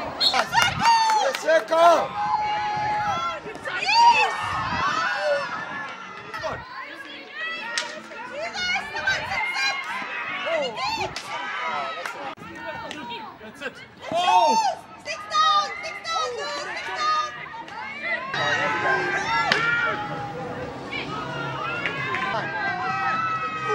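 Hockey sticks strike a ball with sharp cracks.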